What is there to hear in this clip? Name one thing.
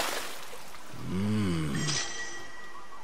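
A young man exclaims with a pleased voice.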